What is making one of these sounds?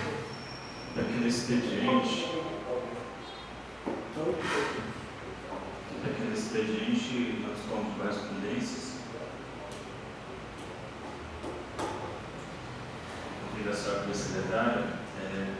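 A man speaks calmly into a microphone, heard through a loudspeaker in an echoing hall.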